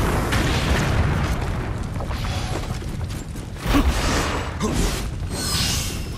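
Metal weapons clash and swish.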